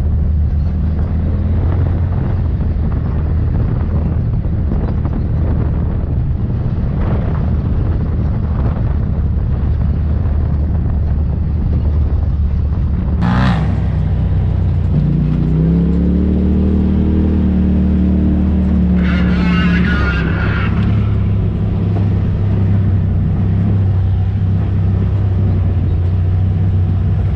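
Tyres crunch and rattle over a rough gravel track.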